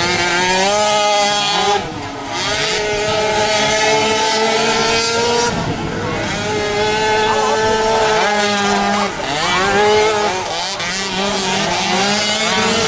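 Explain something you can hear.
Small quad bike engines buzz and rev loudly, rising and falling in pitch.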